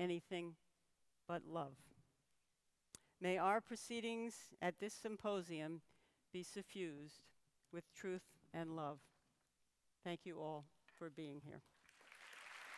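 A middle-aged woman speaks calmly through a microphone in a large hall.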